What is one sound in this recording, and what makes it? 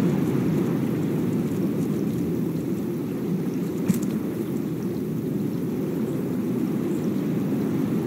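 Sea waves wash and rumble steadily nearby.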